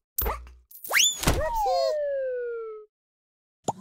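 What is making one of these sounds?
A game jingle plays a falling tone when the round ends.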